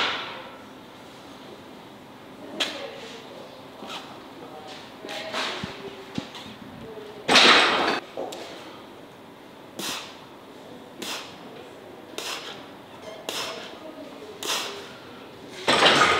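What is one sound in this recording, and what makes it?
Weight plates on a barbell clink as it is pressed overhead again and again.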